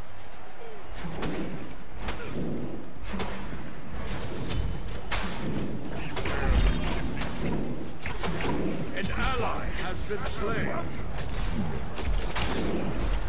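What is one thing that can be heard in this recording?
Weapons swish and strike in quick bursts of fighting.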